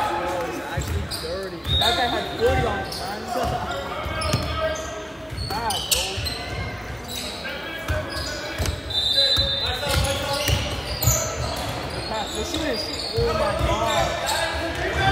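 A basketball bounces with dull thumps.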